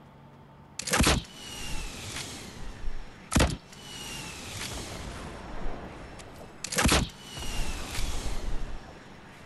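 A rocket explodes with a loud boom.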